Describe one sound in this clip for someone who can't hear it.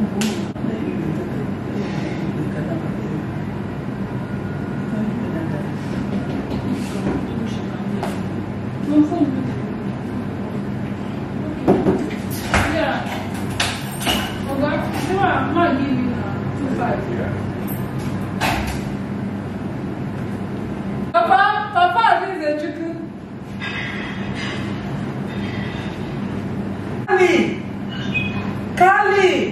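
A middle-aged woman talks casually nearby.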